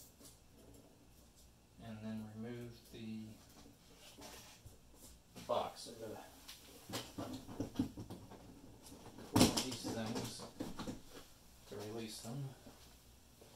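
Cardboard rustles and thumps as a large box is handled.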